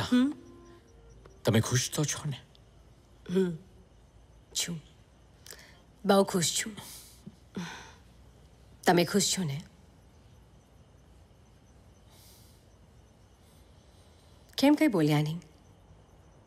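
A woman speaks softly in short phrases, close by.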